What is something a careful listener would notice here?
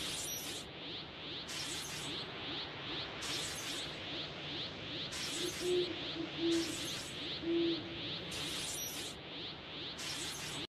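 Rapid magic zaps repeat steadily.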